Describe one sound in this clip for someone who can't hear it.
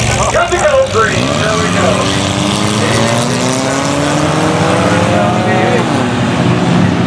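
A race car engine rises steadily in pitch as it accelerates.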